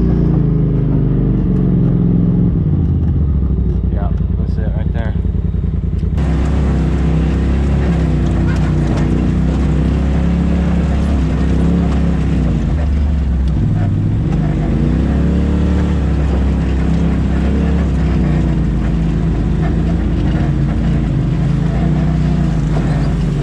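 Tyres crunch and bump over rocks and dirt.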